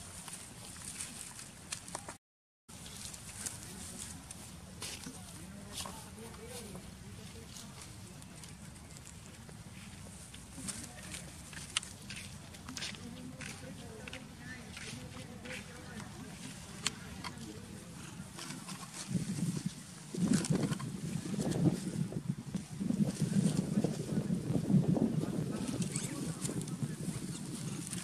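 A young monkey rustles through grass and dry leaves.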